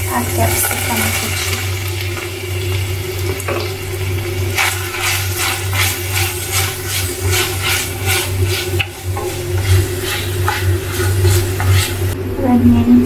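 Vegetables sizzle steadily in hot oil.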